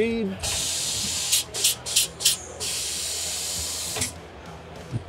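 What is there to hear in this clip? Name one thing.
Compressed air hisses loudly from a spray nozzle in long and short bursts.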